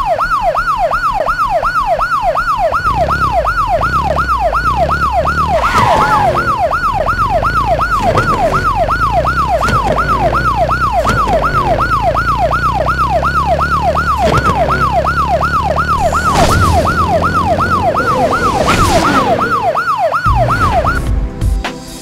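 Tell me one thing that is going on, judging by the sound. A police siren wails rapidly and steadily.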